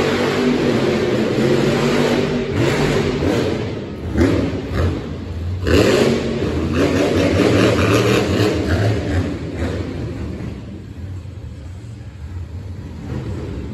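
A monster truck engine roars loudly in a large echoing arena.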